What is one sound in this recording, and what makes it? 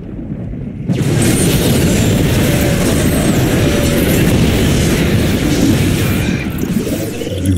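Weapons fire and blasts crackle in a noisy battle.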